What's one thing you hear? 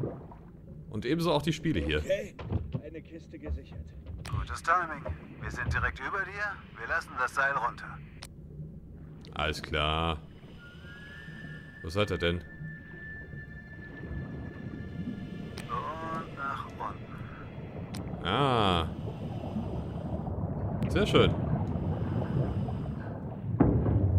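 A diver breathes through a regulator, bubbles gurgling out in bursts.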